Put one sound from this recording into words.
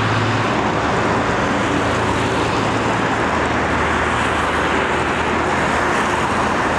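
A jet engine roars steadily overhead as a plane flies low.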